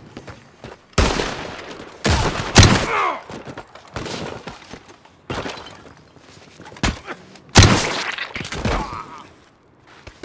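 A submachine gun fires loud, sharp bursts that echo.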